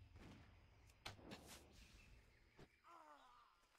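Weapon blows land with sharp impacts.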